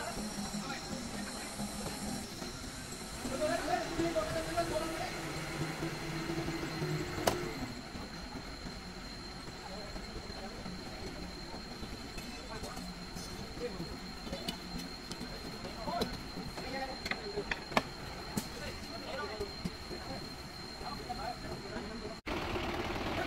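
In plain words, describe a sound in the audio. A crane engine hums steadily.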